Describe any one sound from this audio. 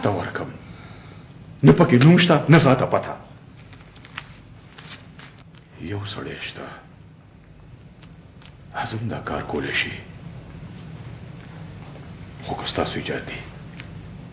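An elderly man speaks in a low, serious voice.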